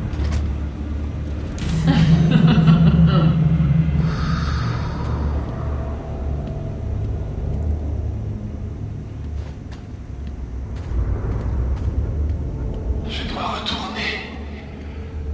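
Heavy footsteps clank on a metal walkway.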